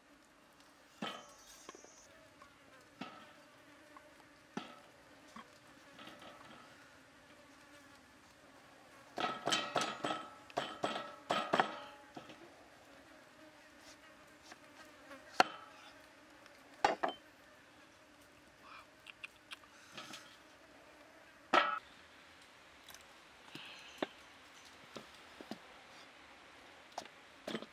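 A cleaver hacks into firm fruit and knocks against a wooden chopping block.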